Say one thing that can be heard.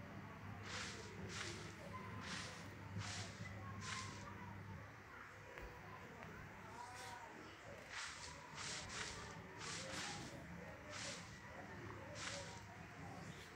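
Footsteps rustle through tall grass at a steady pace.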